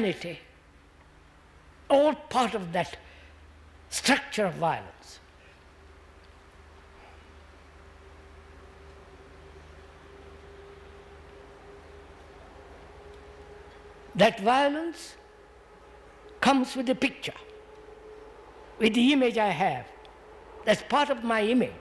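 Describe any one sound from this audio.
An elderly man speaks slowly and thoughtfully into a microphone, with long pauses.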